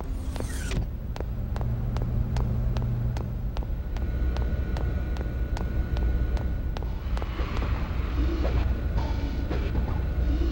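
Quick, light footsteps patter on a hard floor.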